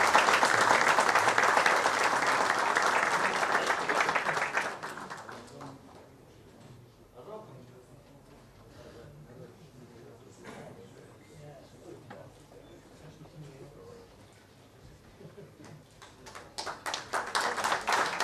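A crowd applauds loudly in a large echoing hall.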